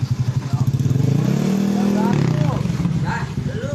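A motorcycle engine revs briefly.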